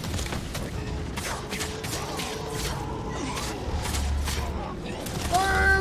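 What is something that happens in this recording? Swords clash and strike in quick bursts.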